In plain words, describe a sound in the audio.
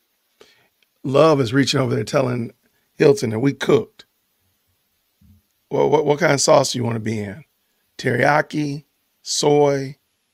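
A man speaks calmly into a microphone, with pauses between phrases.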